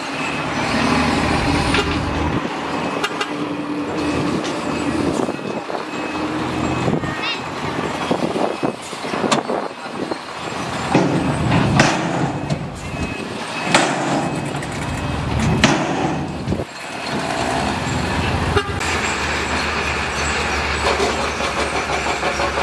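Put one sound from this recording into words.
Rocks scrape and crunch under a bulldozer blade.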